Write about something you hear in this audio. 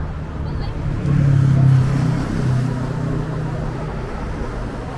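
A motorcycle engine rumbles past close by.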